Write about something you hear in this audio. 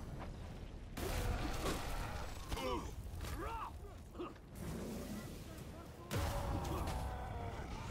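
Swords clash and ring in a fight.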